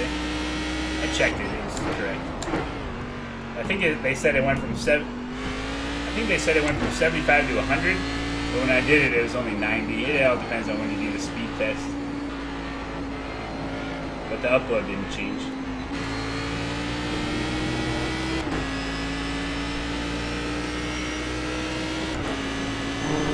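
A racing car engine drones steadily, rising and falling in pitch with gear changes.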